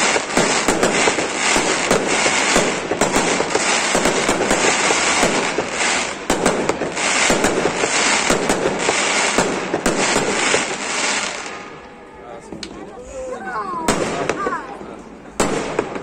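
Fireworks explode with loud bangs.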